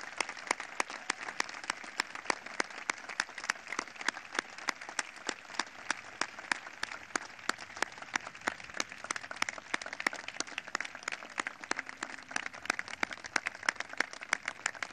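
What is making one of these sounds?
A large outdoor crowd applauds steadily.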